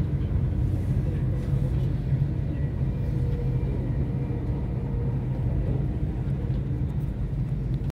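A train rumbles steadily along the track at speed.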